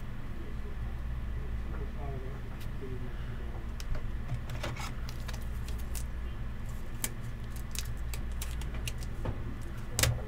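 A plastic card holder crinkles as it is handled.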